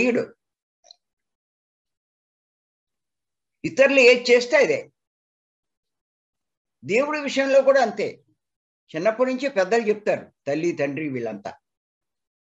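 An elderly man speaks calmly in bursts over an online call.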